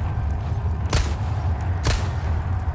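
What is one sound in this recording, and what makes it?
A pistol fires twice.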